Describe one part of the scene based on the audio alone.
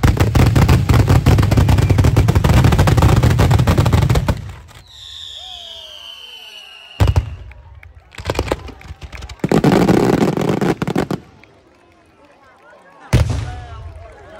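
Fireworks explode with deep booms.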